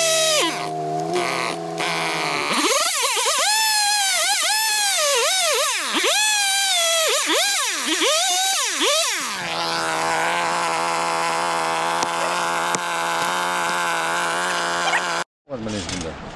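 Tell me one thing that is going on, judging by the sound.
A chainsaw revs loudly in bursts, then idles.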